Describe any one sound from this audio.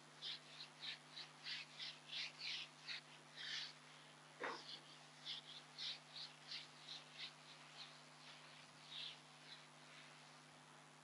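An eraser rubs rhythmically across a whiteboard.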